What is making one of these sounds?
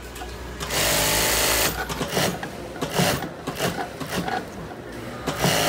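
A sewing machine runs, its needle stitching quickly through fabric.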